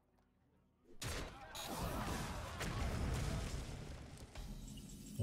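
A magical blast bursts with a loud rushing crash.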